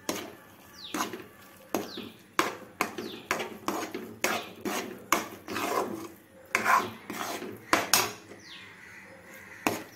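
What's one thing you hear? A spoon scrapes and knocks against a metal pan while stirring food.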